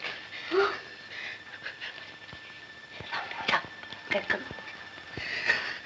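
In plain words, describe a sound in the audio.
A woman speaks with alarm, close by.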